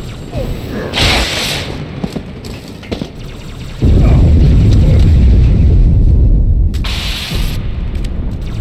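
A glowing blade swishes through the air with a hiss.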